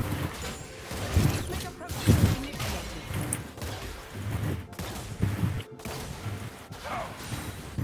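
Swords clash and spells burst in a fight.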